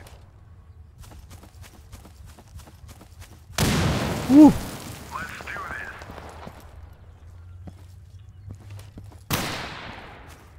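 Footsteps crunch on dry leaves and gravel.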